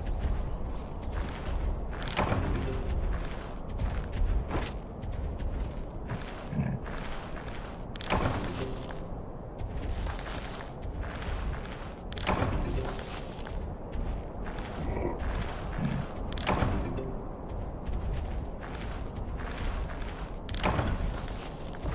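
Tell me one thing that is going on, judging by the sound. Leaves rustle as plants are gathered by hand.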